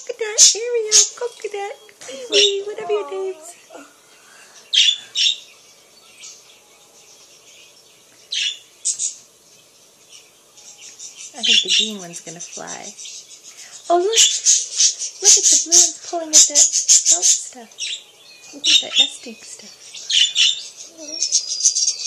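Budgies warble with bending, wavering calls.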